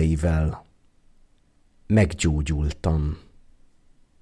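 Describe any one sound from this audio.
A man speaks calmly through a microphone, in short phrases.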